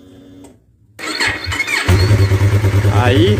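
A motorcycle engine starts up and idles with a loud, throbbing rumble close by.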